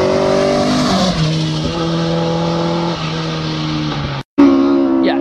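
A rally car engine roars loudly as the car speeds past and fades down the road.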